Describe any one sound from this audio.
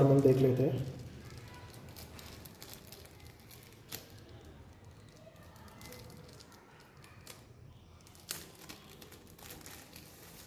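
Plastic wrapping crinkles as hands pull it open.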